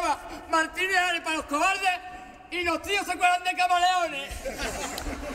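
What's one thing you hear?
A man sings out loud on a stage, heard through a microphone.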